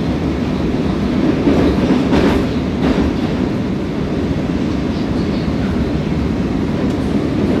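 A metro train rumbles and roars as it runs through a tunnel.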